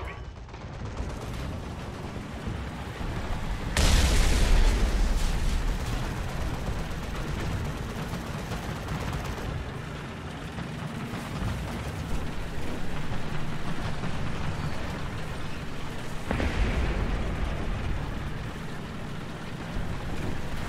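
Tank tracks clatter and squeak.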